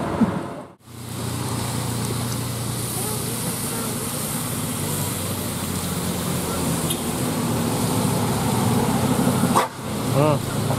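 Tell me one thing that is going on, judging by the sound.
A bus engine rumbles as it climbs past close by.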